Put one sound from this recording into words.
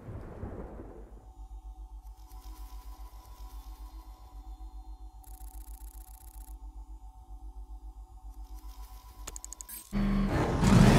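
A pulsing electronic hum plays steadily.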